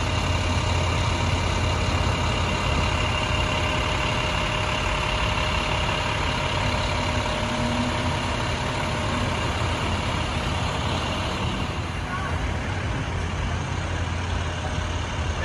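Diesel engines idle with a steady low rumble.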